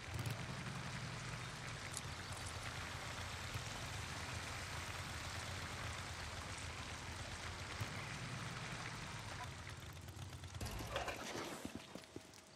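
Rain hisses steadily outdoors.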